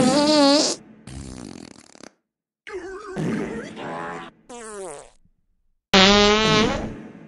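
A young man sobs and wails close by.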